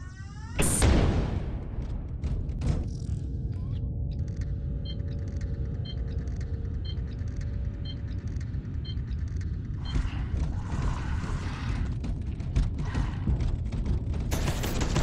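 A deep low rumble drones throughout.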